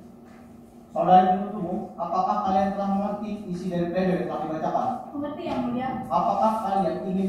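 A man speaks steadily through a microphone in a large room.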